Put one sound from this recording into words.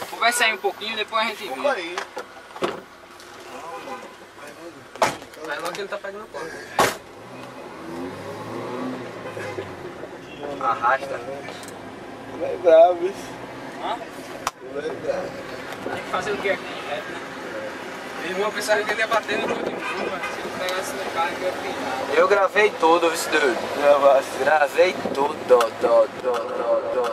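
A man talks loudly close by.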